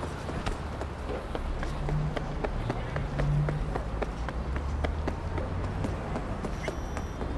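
A car drives past with a low engine hum.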